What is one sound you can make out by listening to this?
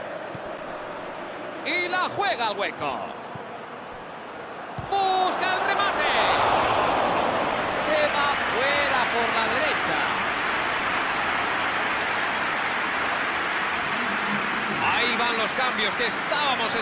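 A large stadium crowd roars steadily, growing louder partway through.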